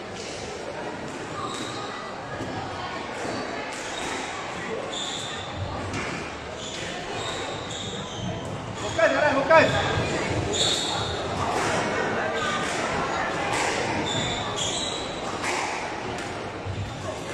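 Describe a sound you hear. A squash ball smacks sharply against walls and racquets, echoing in a large hall.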